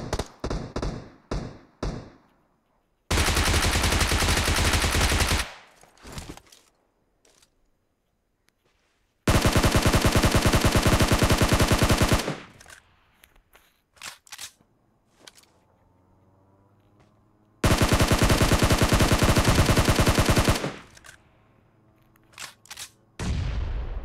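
Single gunshots crack sharply.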